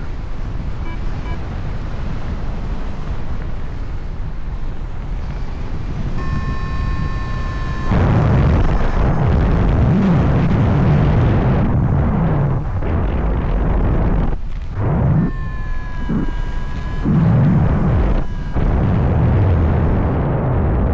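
Wind rushes loudly past in flight, outdoors at height.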